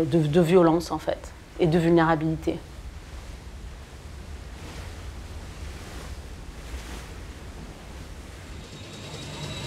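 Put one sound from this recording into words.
Water churns and rushes in a boat's wake.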